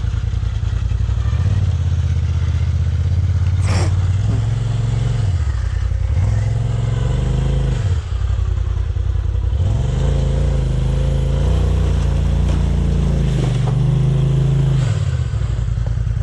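An off-road vehicle's engine revs hard in bursts as it climbs over rocks.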